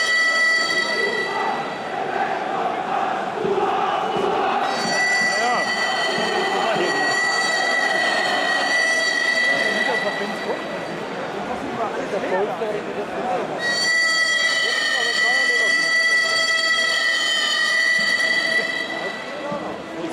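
A large crowd sings and chants loudly in an open stadium.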